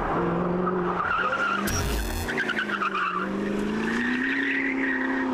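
Tyres squeal on asphalt as a car slides through a corner.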